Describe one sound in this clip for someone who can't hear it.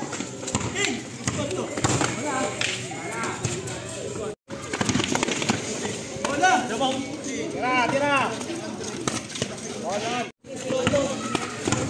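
A basketball bounces on concrete.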